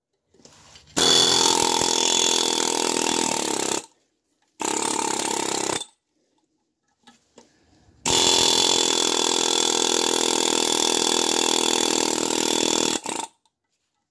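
An air tool whirs loudly in steady bursts.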